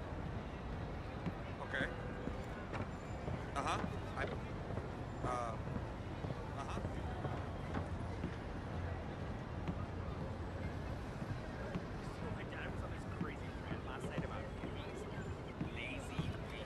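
Footsteps thud on wooden stairs and boards.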